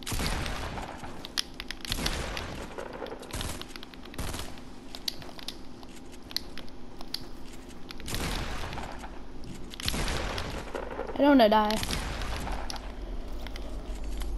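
Gunshots crack in quick bursts in a video game.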